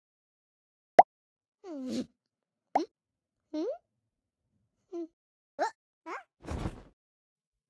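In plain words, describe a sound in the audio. Short, playful cartoon sound effects chirp and squeak in quick bursts.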